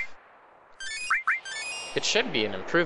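A sparkling healing chime rings out.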